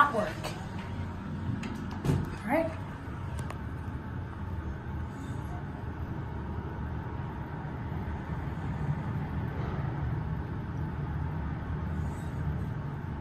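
An elevator hums steadily as it travels down.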